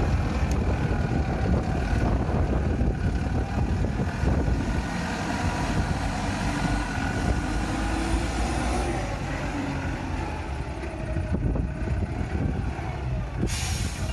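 A diesel engine rumbles steadily as a heavy vehicle drives over rough ground.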